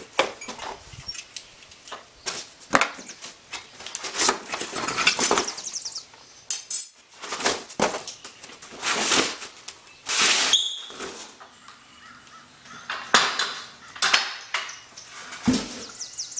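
Metal parts clank and rattle against cardboard.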